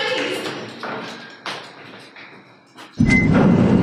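Footsteps hurry up metal stairs.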